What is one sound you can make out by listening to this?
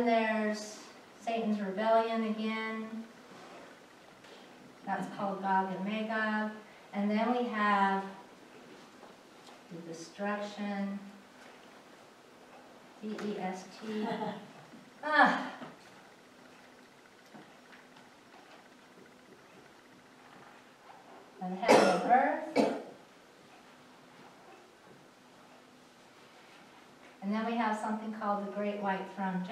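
A woman speaks calmly, explaining in a room.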